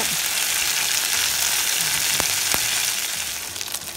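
Tongs clink against a pan.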